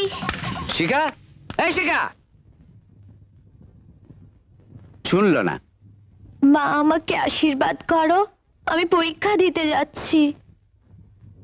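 A young woman speaks nearby in short bursts.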